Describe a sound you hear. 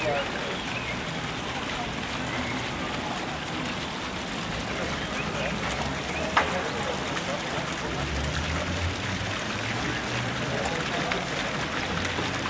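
A large metal wheel rolls over grass and paving.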